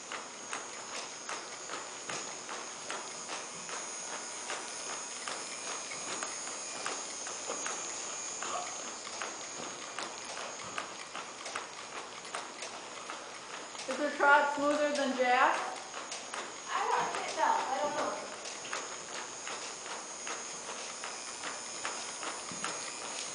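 A horse's hooves thud softly on soft ground at a walk.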